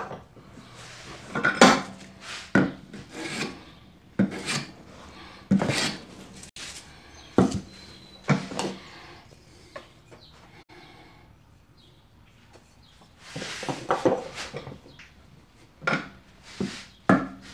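A hand plane scrapes along wood in short strokes.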